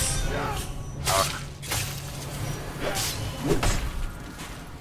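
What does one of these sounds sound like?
Metal blades clash and strike with sharp hits.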